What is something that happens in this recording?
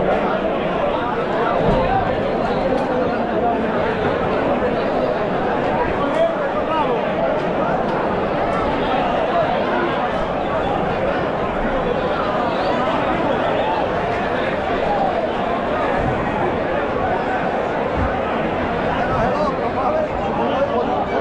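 A large outdoor crowd chatters and shouts steadily.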